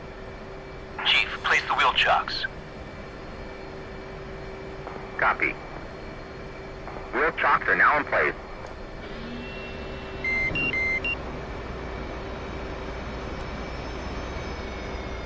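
A jet engine hums steadily at idle.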